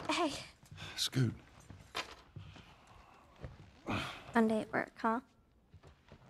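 A young girl speaks playfully, with a laugh in her voice.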